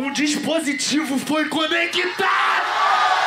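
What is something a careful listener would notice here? A young man raps rapidly into a microphone over loudspeakers.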